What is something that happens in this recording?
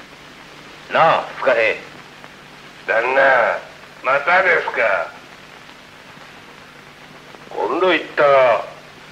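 An elderly man answers calmly, heard through an old, hissy film soundtrack.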